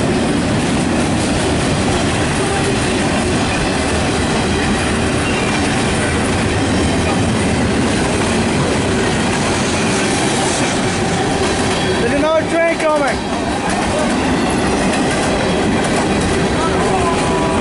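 A freight train rumbles and clatters loudly past, close by.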